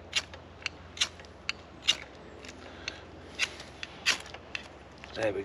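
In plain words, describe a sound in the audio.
A knife scrapes sharply against wood in short strokes.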